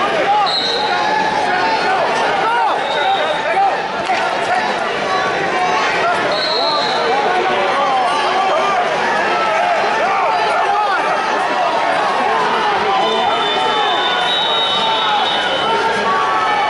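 A referee blows a whistle in short blasts.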